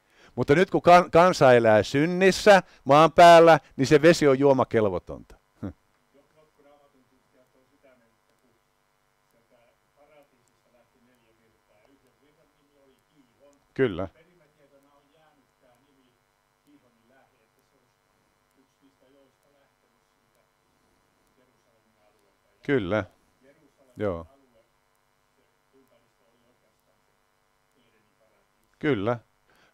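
A middle-aged man speaks with animation through a microphone, with long pauses.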